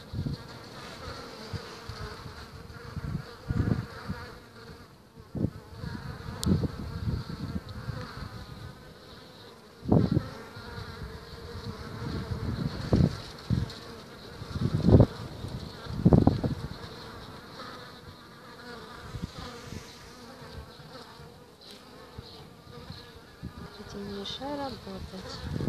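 Honeybees buzz and hum steadily close by.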